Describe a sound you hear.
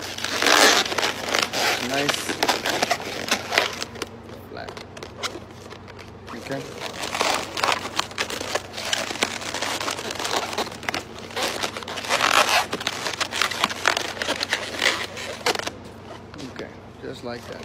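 Balloons squeak and rub as they are twisted by hand.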